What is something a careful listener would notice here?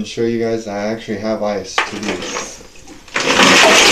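Ice cubes rattle in a plastic bucket.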